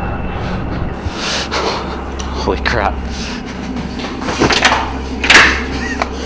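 A young man speaks in an excited, breathy voice close by.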